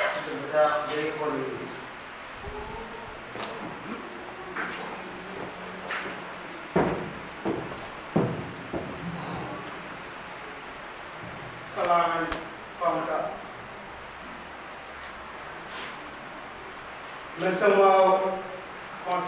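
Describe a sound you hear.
A man speaks into a microphone over loudspeakers in an echoing hall, in short bursts with pauses.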